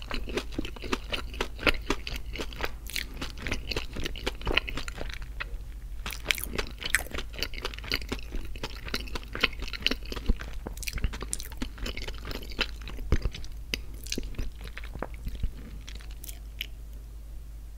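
A man makes wet kissing and lip-smacking sounds very close to a microphone.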